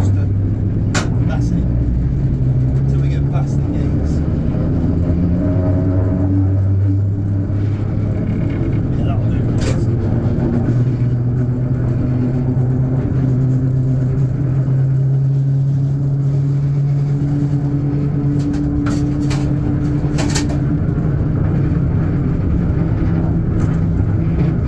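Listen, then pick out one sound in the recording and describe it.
Train wheels clack now and then over rail joints.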